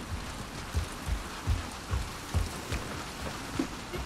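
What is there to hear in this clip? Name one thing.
Footsteps thud softly on a hard floor.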